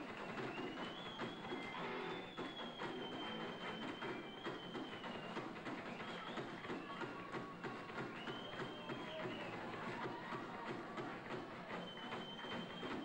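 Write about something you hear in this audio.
Drums pound rapidly in a loud live performance.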